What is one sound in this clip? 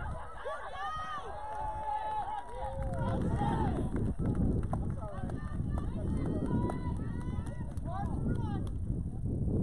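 Young players shout and cheer from across an open field.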